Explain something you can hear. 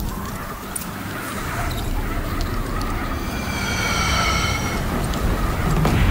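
A pulley whirs along a taut cable.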